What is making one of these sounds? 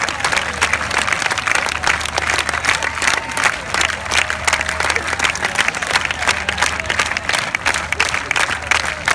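A crowd cheers and shouts loudly.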